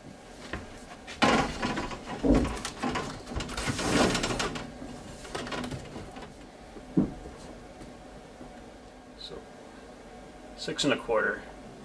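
Plastic pipe fittings knock and click together.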